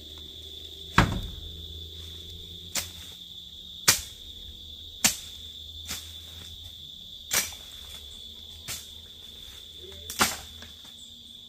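A blade chops into weeds and soil with sharp thwacks.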